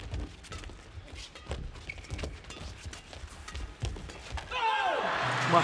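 Rackets smack a shuttlecock back and forth in quick, sharp hits.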